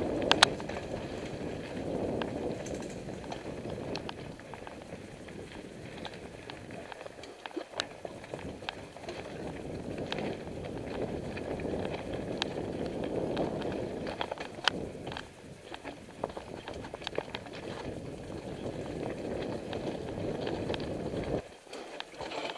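Bicycle tyres rumble over a bumpy dirt trail.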